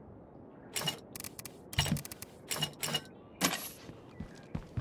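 Interface clicks and chimes sound in quick bursts.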